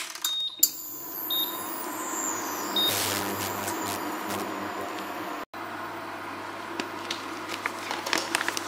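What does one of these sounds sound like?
An induction hob hums and buzzes steadily while heating a pot.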